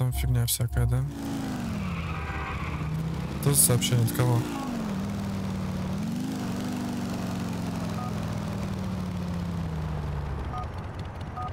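A motorcycle engine revs and drones.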